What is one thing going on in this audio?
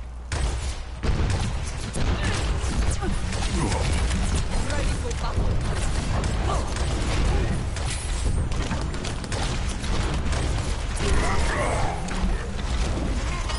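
Rapid energy gunfire crackles and blasts loudly.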